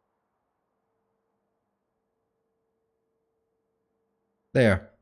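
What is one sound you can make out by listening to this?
Machines hum faintly and steadily.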